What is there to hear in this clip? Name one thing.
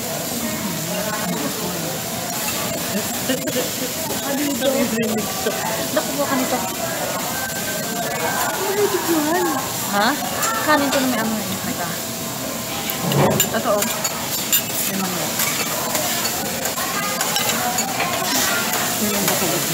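Meat sizzles on a hot griddle.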